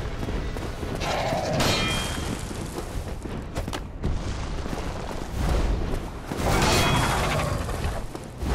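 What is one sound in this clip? A huge winged creature beats its wings with heavy whooshes.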